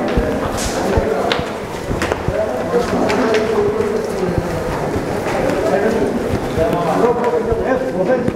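Footsteps shuffle and scuff on a hard floor.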